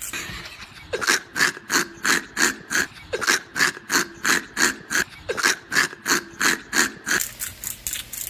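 A pepper mill grinds in short, rhythmic turns.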